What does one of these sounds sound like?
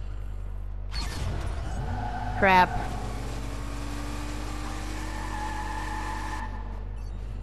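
Car tyres screech and skid on pavement.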